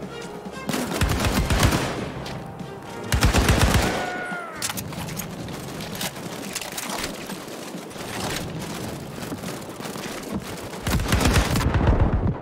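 Rifle shots fire in quick bursts, close by.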